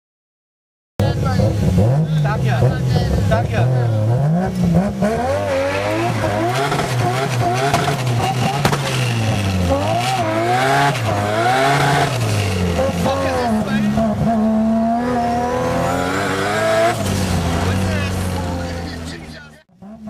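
A car engine revs hard, climbing and dropping in pitch as it shifts gears.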